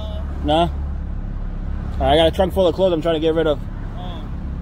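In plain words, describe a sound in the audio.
A man speaks loudly nearby, heard through a car window.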